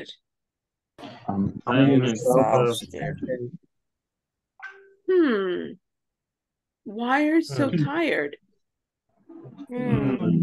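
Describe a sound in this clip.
A woman speaks calmly through an online call, in short phrases with pauses.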